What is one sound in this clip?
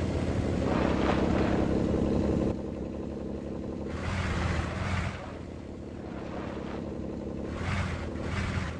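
An off-road truck's engine rumbles and revs unevenly.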